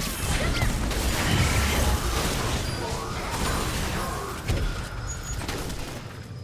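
Video game spells whoosh and burst during a fight.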